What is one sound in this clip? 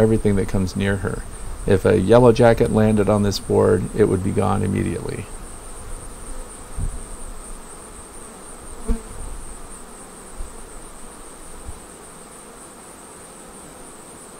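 Bees buzz and hum close by.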